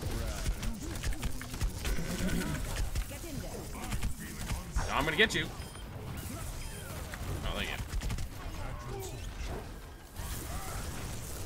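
An electric beam weapon crackles and buzzes in sharp bursts.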